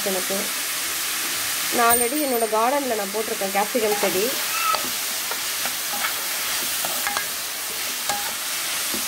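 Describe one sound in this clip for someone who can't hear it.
Vegetables sizzle in a hot pan.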